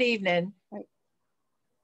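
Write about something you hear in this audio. An older woman laughs over an online call.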